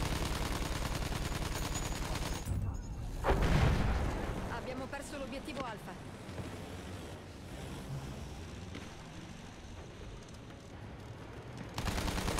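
Machine guns rattle in rapid bursts.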